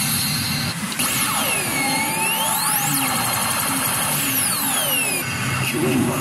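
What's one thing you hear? Electronic sound effects from a gaming machine sweep up and down in pitch.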